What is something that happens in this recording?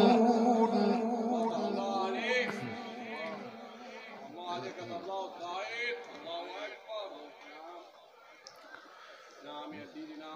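An elderly man chants in a melodic voice through a microphone and loudspeakers.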